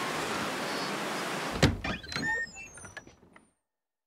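A wooden door thuds and creaks open.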